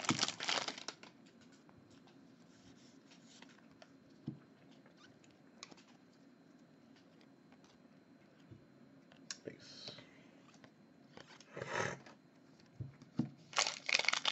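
Trading cards flick and slide as hands shuffle through them.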